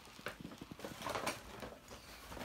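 A paper gift bag rustles and crinkles.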